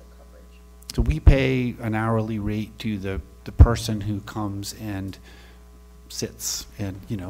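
A middle-aged man speaks with animation, close to a microphone.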